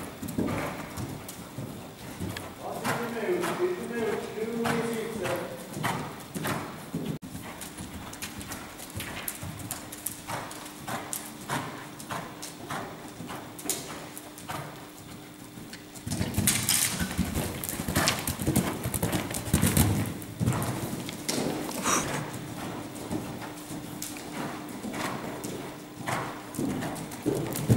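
Hooves thud softly on sand as a horse canters.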